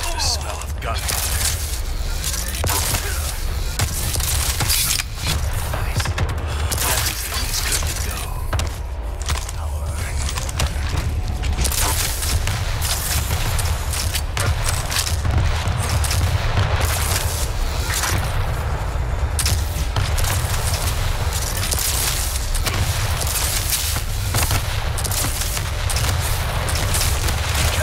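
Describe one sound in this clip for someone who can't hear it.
A rapid energy gun fires in bursts.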